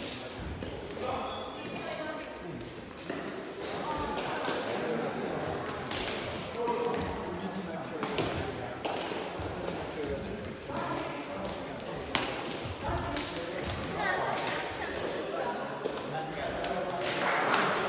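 Men call out and shout to each other in a large echoing hall.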